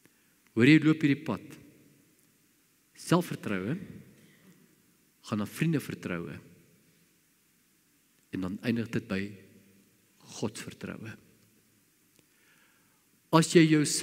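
An elderly man speaks slowly and emphatically into a microphone, with pauses between phrases.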